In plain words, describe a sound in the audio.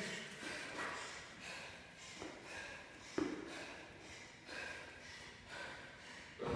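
A jump rope slaps the floor in a quick rhythm.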